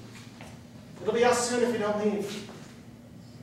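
A second man answers, speaking loudly with animation.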